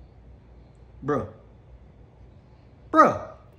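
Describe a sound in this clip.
A man calls out twice in short, falling cries close by.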